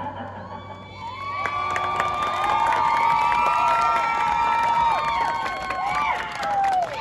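A marching band's brass section plays a sustained, swelling chord outdoors.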